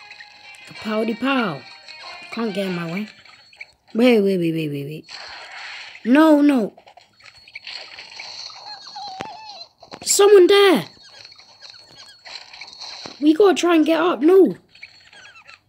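A young boy speaks with animation in short bursts, close to a microphone.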